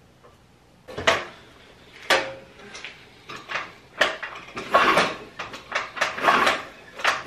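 A man stamps on a scooter's kick-start pedal several times, with clattering knocks.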